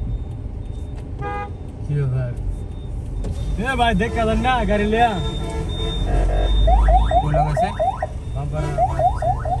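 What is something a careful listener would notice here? Heavy traffic rumbles close by.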